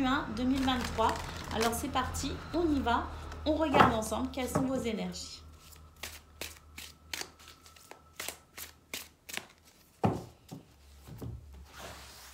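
Playing cards are shuffled with soft riffling taps.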